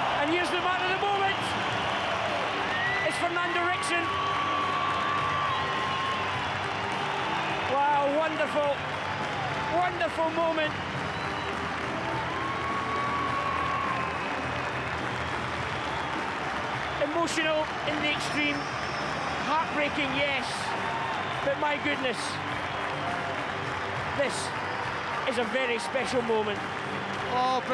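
A crowd cheers and chants loudly.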